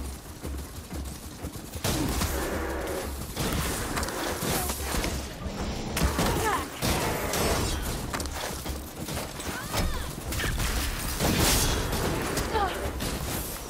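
Heavy mechanical footfalls thud and clank at a steady gallop.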